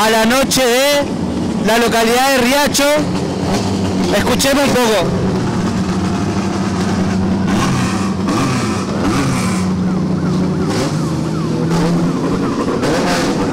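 Rally cars roll slowly past on pavement.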